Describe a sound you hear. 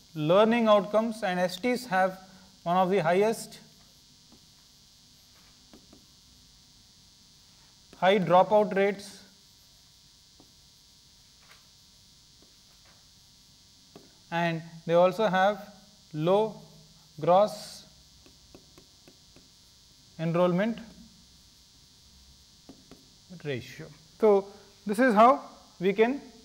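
A man lectures calmly in short bursts with pauses, close to a microphone.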